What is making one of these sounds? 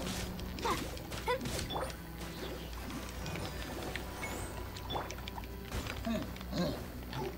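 Sword strikes whoosh and clang in quick succession.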